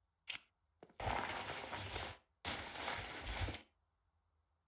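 Hands rummage noisily through a container.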